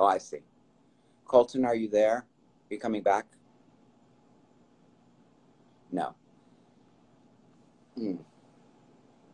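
A middle-aged man speaks calmly over an online call, in short bursts.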